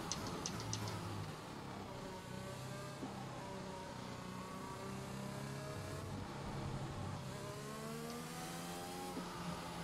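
A racing car engine whines loudly, its pitch rising and falling as it shifts gears.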